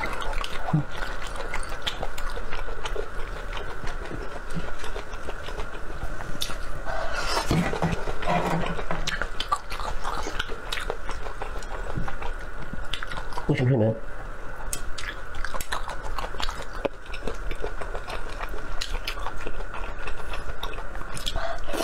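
A young man chews and slurps wetly, close to a microphone.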